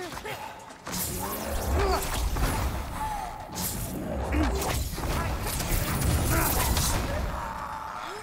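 Magic bursts whoosh and crackle.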